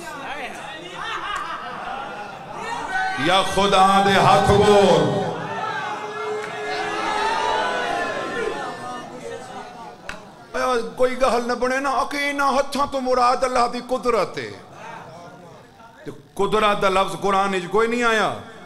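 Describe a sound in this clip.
A man chants passionately into a microphone, heard through loudspeakers.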